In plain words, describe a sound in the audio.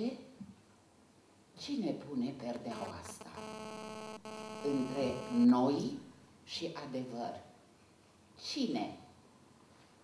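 An elderly woman speaks with animation into a microphone, heard through loudspeakers.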